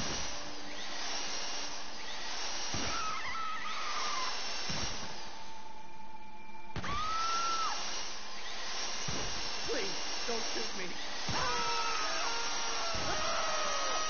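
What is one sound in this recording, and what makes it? A power drill whirs steadily as it bores into metal.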